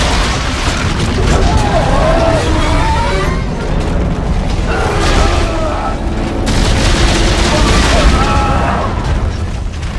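A monster screeches and snarls up close.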